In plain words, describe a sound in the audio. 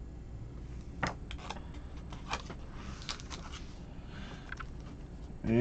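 A foil card pack crinkles and rustles as it is torn open.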